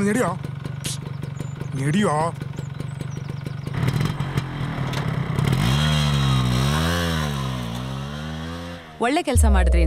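A motorcycle engine hums as it rides along.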